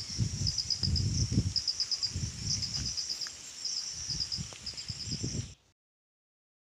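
Wind rustles through leafy trees outdoors.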